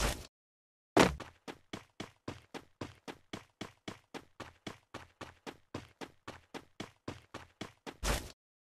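Quick footsteps thud steadily on grass as a character runs.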